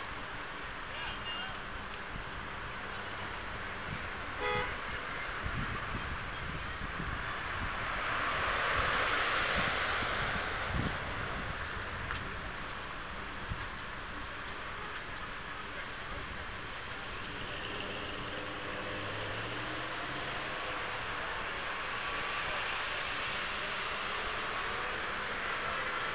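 A crowd of people chatters and calls out outdoors at a distance.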